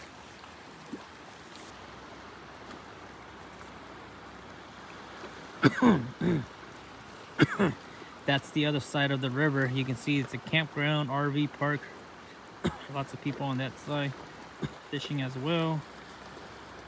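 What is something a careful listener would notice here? A river flows and rushes steadily nearby.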